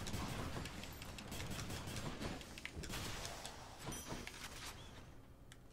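Sharp magical hits and whooshes crackle in quick bursts.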